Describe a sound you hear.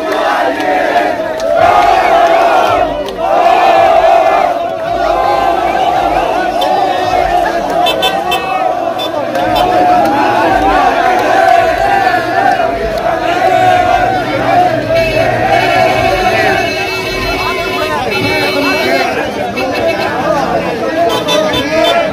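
Young men clap their hands in rhythm.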